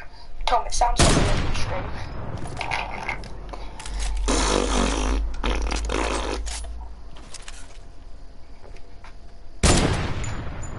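A rifle fires single loud shots that echo away.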